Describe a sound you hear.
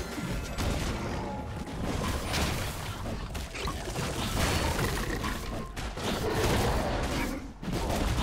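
Game combat effects clash and burst in quick succession.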